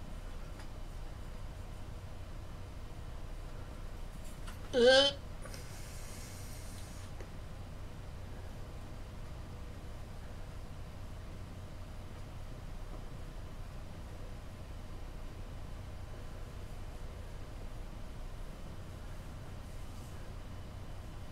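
A small tool scrapes softly against clay.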